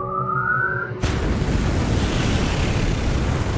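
Fire bursts out with a loud roaring whoosh.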